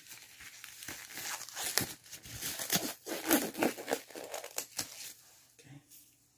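A rubber glove crinkles and snaps as it is pulled on close by.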